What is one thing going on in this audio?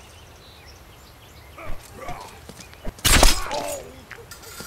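Steel swords clash and ring sharply.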